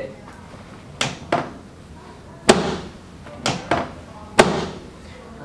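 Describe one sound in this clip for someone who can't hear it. Hands thump firmly on a man's back.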